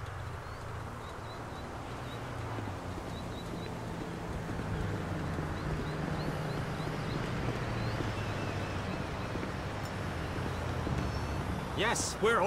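Footsteps crunch on gravel and pavement.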